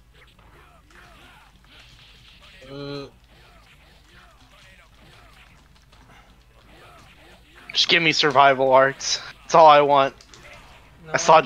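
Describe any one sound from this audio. Video game fighting sounds clash and thud quietly.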